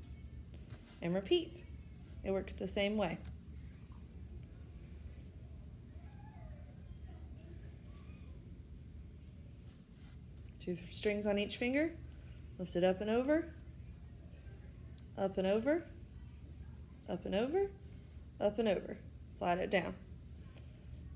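A woman speaks calmly close by, pausing between phrases.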